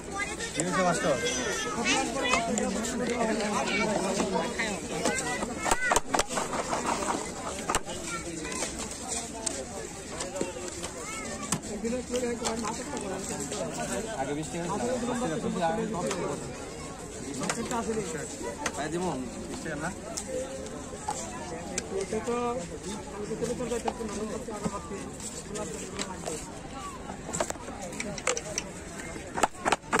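A knife taps and chops through crisp fruit.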